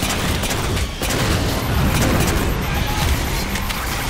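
Gunfire crackles in bursts.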